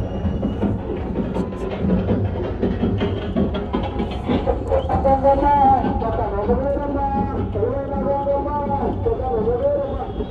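A large crowd chatters and shouts nearby outdoors.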